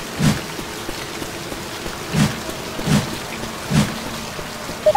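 Heavy footsteps thud slowly on pavement.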